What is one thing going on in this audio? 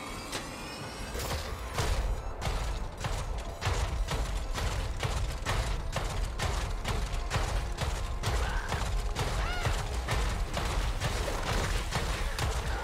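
Heavy metallic footsteps thud in quick succession.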